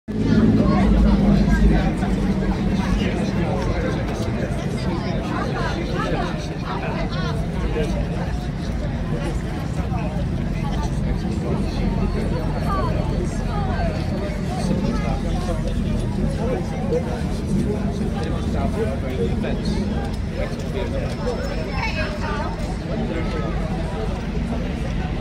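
A crowd of adults and children chatters nearby outdoors.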